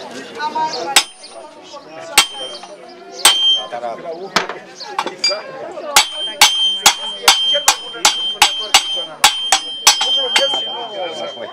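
A hammer strikes an anvil with sharp metallic rings.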